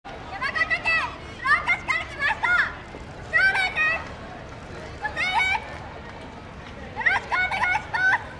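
A group of young dancers chant loudly in short bursts outdoors.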